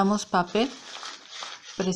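Hands crumple and crinkle a ball of paper.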